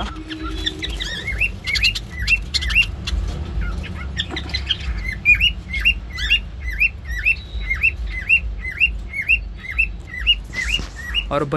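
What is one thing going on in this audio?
Budgies chirp in quick repeated calls.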